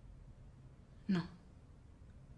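A woman answers with a single short word.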